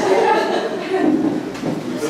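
A girl laughs.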